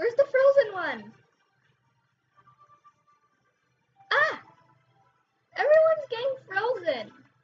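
A young girl talks with animation into a microphone, in short bursts with pauses.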